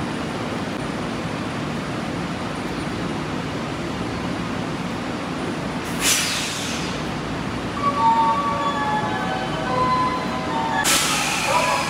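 A train's motors hum steadily beside a platform.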